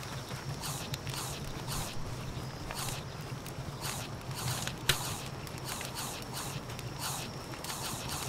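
A small fire crackles and hisses.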